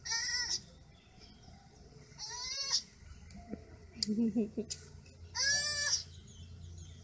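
A baby animal squeals with high, piercing cries.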